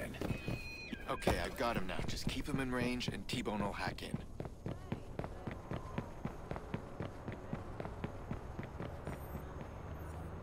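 Footsteps run on a paved street.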